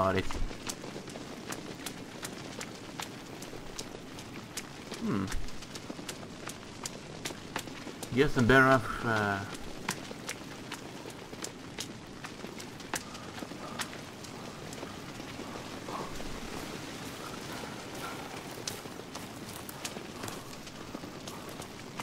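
A torch flame flickers and crackles.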